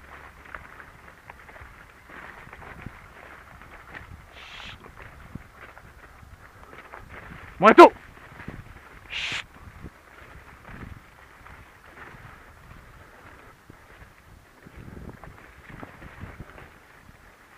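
Dogs run through leafy crops, rustling the plants.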